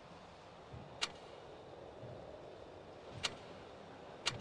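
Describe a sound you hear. Soft interface clicks sound now and then.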